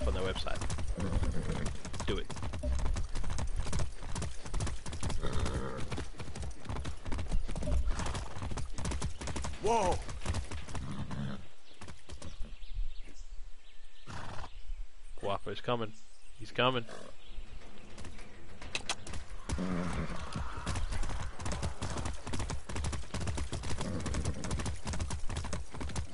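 Horse hooves clop quickly on a dirt road.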